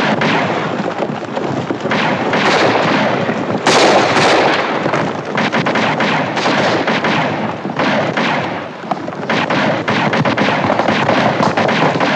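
Horses gallop and hooves pound.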